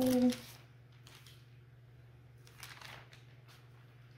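Paper rustles and crinkles as a transfer sheet is peeled away.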